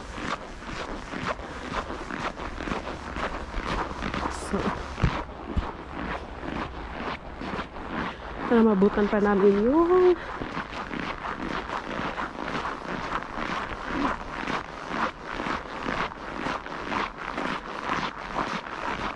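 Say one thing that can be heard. Footsteps crunch steadily on packed snow.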